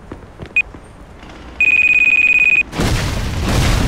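A car door opens and shuts.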